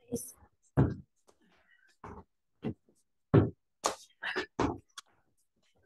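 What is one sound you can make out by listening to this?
Feet thump heavily on a floor during exercise.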